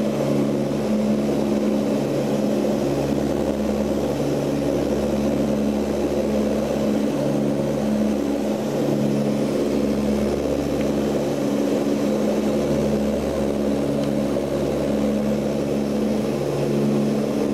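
A propeller engine drones steadily and loudly close by, with a low throbbing hum.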